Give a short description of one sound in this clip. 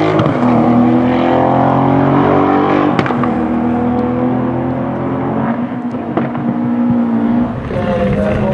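An air-cooled Porsche 911 flat-six races by at full throttle.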